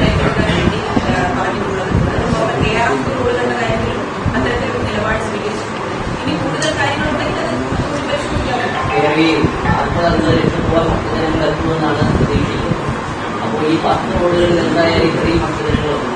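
A young woman speaks calmly and steadily into microphones.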